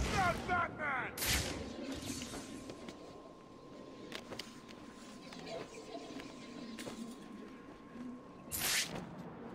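Wind rushes past as a cape flaps in flight.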